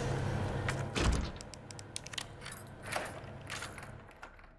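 A key turns in a lock with sharp metallic clicks.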